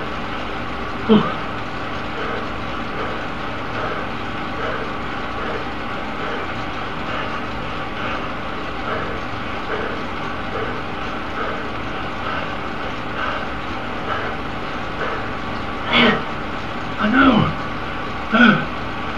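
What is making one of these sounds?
A man speaks briefly into a nearby microphone.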